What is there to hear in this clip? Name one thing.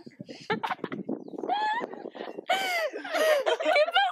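A young girl laughs nearby.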